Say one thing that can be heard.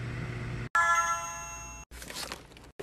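An oven chimes a short electronic melody.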